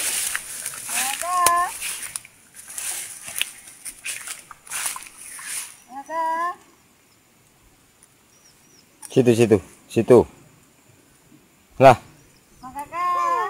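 A young macaque gives high squealing calls.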